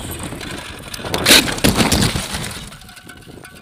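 A bicycle crashes and scrapes along the road.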